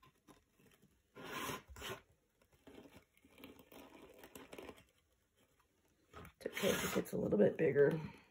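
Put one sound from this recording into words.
A wooden frame slides and knocks on a table.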